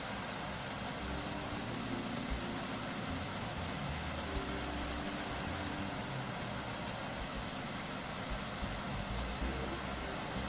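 A tractor engine rumbles as it approaches.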